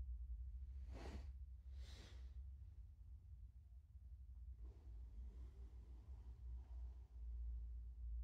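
A cat scrambles on a blanket, rustling and thumping the fabric close by.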